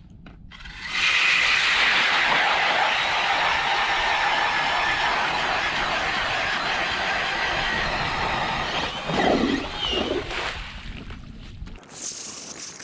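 A hand auger grinds steadily into thick ice.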